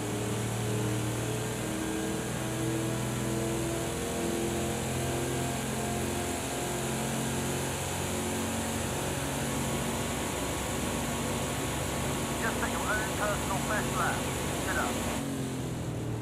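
A racing car engine roars at high speed and climbs through the gears.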